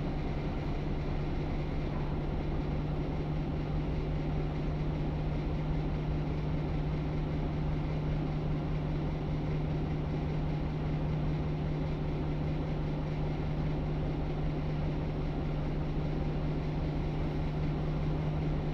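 A bus rattles and rumbles as it drives.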